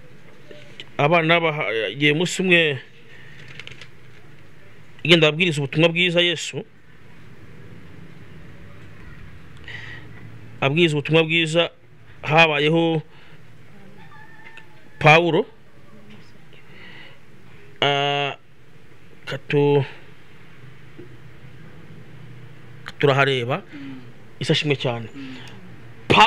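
A man reads aloud in short bursts close to a microphone, with pauses between phrases.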